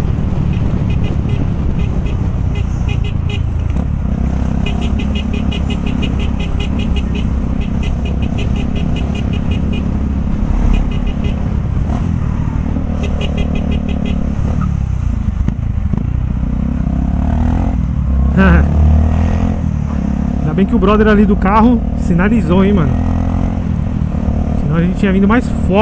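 A motorcycle engine runs steadily up close.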